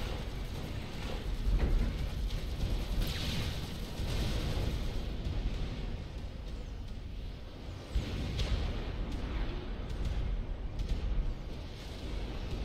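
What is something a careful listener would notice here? Explosions rumble and boom in a battle.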